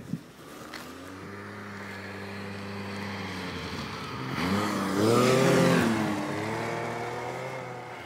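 A snowmobile engine revs and roars nearby.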